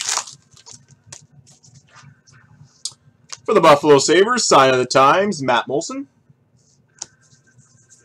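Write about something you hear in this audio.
Trading cards slide against each other as they are shuffled.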